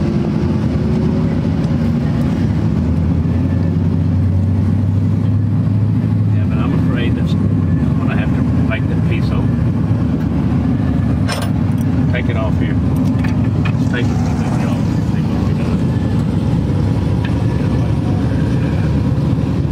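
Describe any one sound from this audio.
Metal tools click and tap against engine fittings.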